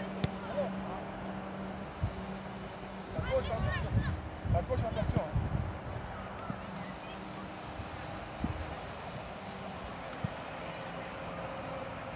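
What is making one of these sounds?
Footsteps patter on artificial turf as a boy jogs.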